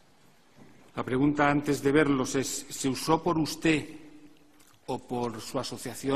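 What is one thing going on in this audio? A middle-aged man speaks firmly into a microphone.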